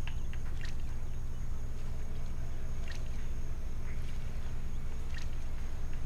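Water laps softly against a wooden dock.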